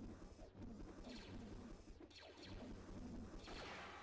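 Lightsabers hum and clash.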